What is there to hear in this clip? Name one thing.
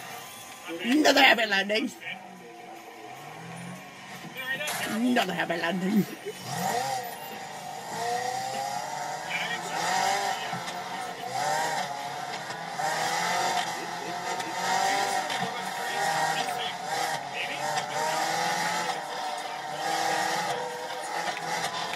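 A racing car engine roars and revs through a loudspeaker.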